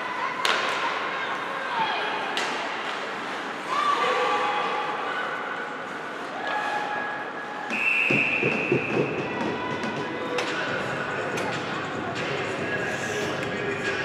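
Ice skates scrape and carve across the ice in a large echoing rink.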